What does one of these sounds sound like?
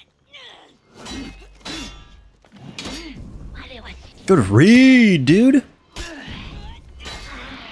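Steel blades clash and clang.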